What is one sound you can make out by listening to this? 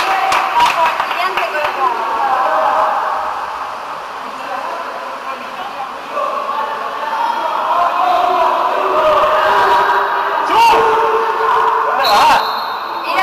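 Young men shout to each other across the echoing pool.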